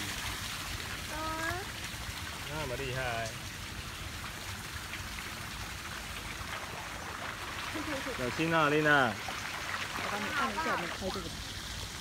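Water splashes as a child kicks in a pool.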